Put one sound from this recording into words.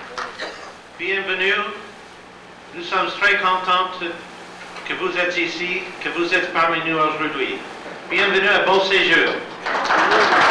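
An elderly man speaks warmly through a microphone.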